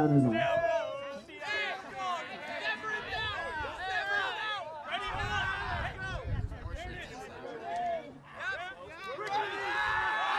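A group of young men shout and cheer excitedly outdoors.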